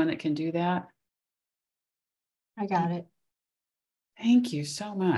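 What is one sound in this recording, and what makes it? A middle-aged woman speaks warmly over an online call.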